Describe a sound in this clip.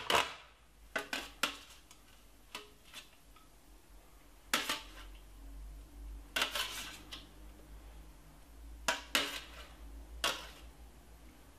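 A metal grater scrapes in short strokes.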